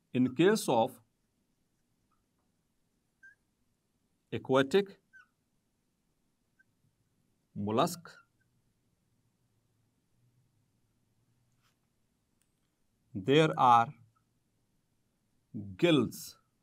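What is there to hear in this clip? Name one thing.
A man speaks calmly into a close microphone, in short phrases with long pauses.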